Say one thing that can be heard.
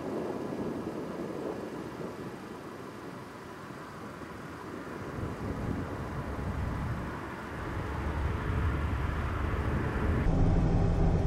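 A small car drives toward the listener on an open road.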